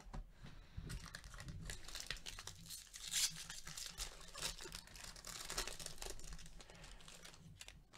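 A foil wrapper crinkles and rustles as it is handled.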